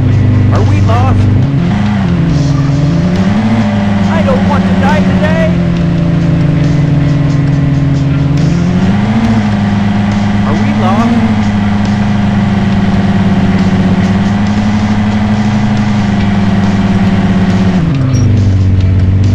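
A car engine hums steadily and revs up and down as the car drives.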